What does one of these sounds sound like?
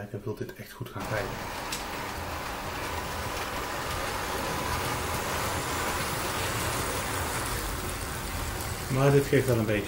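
A model train rumbles and hums steadily along its track.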